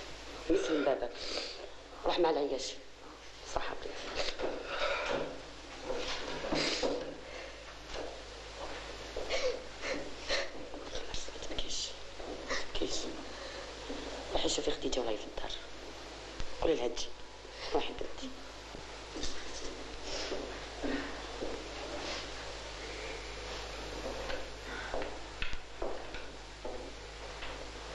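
A middle-aged woman speaks anxiously, close by.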